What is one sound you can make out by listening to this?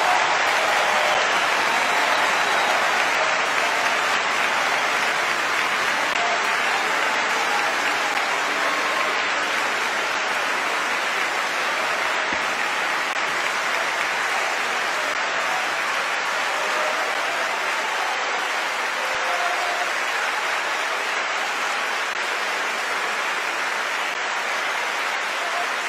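A large audience applauds steadily in a big echoing hall.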